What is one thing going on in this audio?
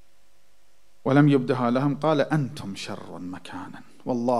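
A man speaks with emphasis into a microphone, heard through a loudspeaker.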